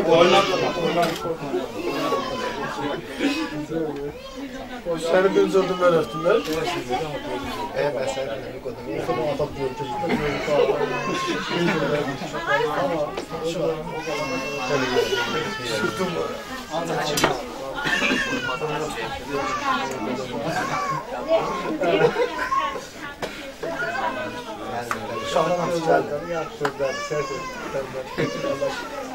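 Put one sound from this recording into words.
Several men talk and laugh together.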